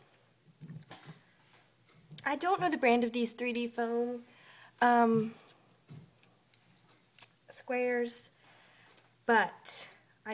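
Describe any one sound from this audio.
Paper rustles softly under handling fingers.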